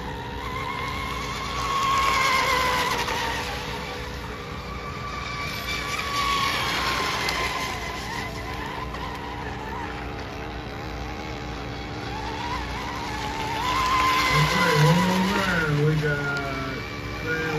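Spray hisses as a boat skims across the water.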